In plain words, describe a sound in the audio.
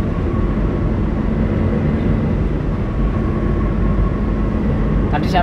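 A car drives steadily along a road, with a low rumble of engine and tyres.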